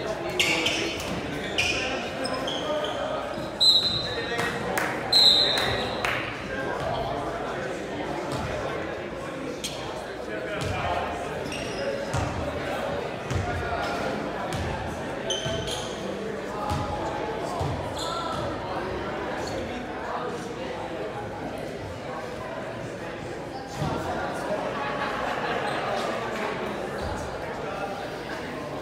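Basketball sneakers squeak on a hardwood court.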